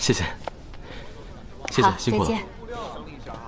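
A young man says thanks.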